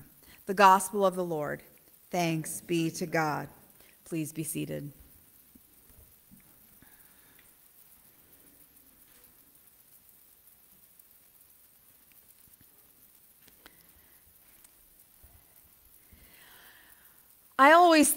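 A woman speaks with feeling into a microphone.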